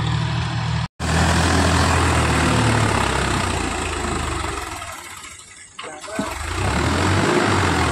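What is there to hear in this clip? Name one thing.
Water splashes and churns under tractor wheels.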